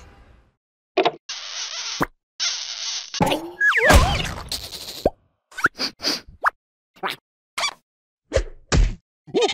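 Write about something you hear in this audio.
A cartoon creature babbles in a squeaky, silly voice.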